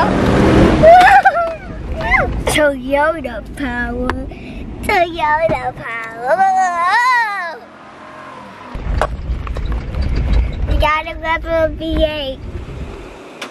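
A young girl sings happily close by.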